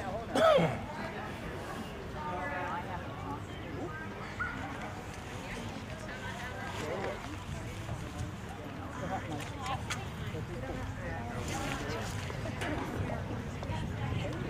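Men and women chat casually at a distance outdoors.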